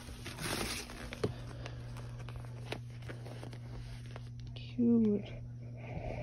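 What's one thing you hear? A squeaky plastic inflatable toy crinkles in a hand.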